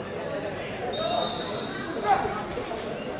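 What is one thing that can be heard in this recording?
A referee's whistle blows a long steady blast.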